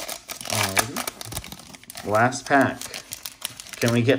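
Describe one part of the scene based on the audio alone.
A foil wrapper crinkles and tears.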